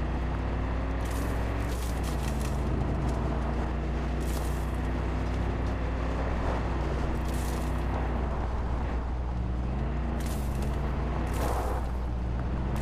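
Tyres crunch over gravel in bursts.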